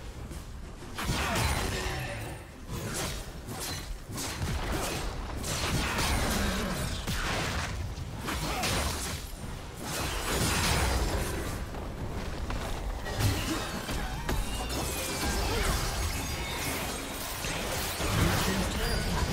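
Game spell effects whoosh and crackle in a fast battle.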